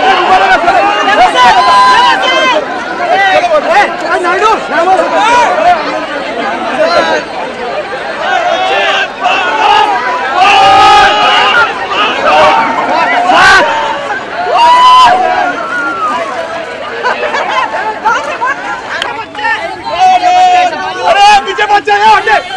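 A dense crowd of young men and women shouts and cheers excitedly, close by, outdoors.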